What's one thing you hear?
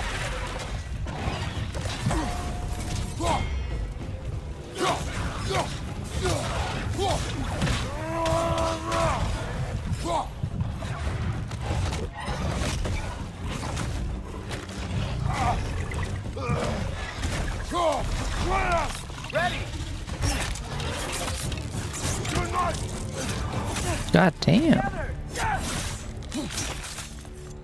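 Heavy blows and impacts thud during a fierce fight.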